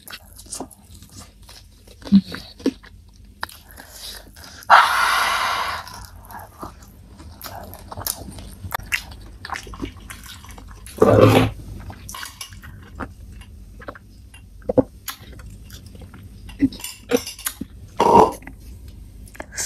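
A young woman chews food close to a microphone, with wet mouth clicks.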